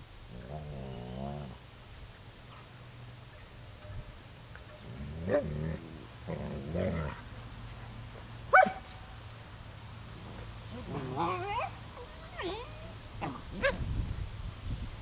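Dogs growl playfully as they wrestle.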